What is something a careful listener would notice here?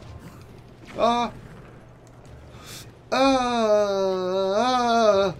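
A young man cries out in a long, drawn-out wail close to a microphone.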